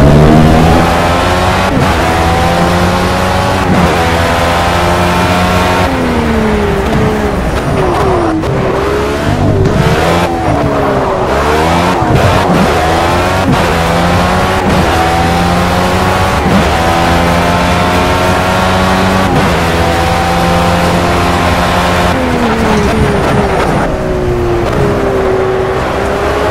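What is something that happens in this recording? A racing car engine screams, climbing through the gears and dropping as it slows for corners.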